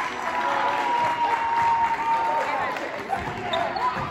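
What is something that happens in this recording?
Young women cheer and shout excitedly in a large echoing gym.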